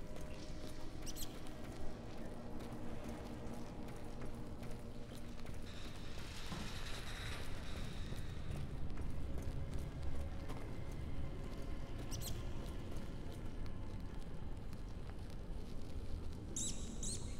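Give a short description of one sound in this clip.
A burning torch crackles and hisses close by.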